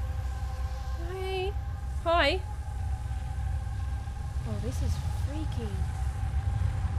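A young woman speaks into a microphone with animation, close by.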